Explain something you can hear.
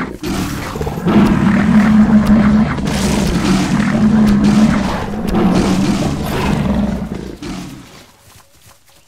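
Big cats snarl and growl as they fight.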